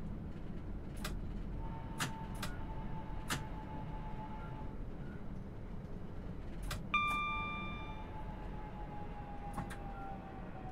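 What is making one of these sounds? Train wheels click sharply over rail joints.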